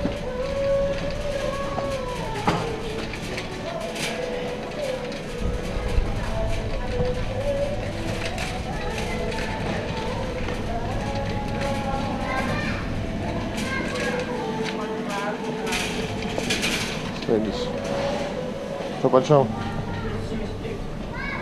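A shopping cart rolls and rattles along a hard floor.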